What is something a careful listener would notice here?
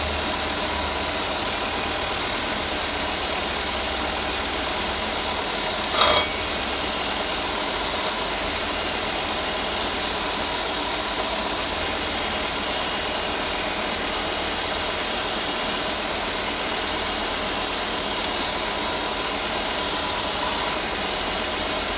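A belt sander grinds against wood with a rasping hiss.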